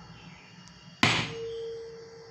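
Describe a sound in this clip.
A small object knocks sharply onto a wooden desk.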